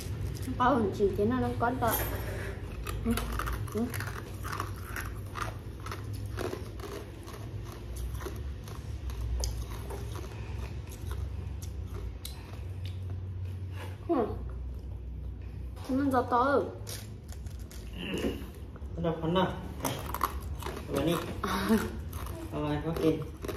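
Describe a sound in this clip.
Ice cubes rattle and clink in a plastic cup.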